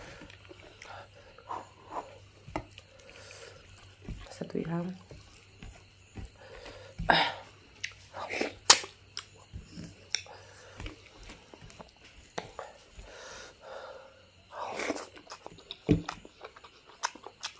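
Fingers squish and mix soft rice close by.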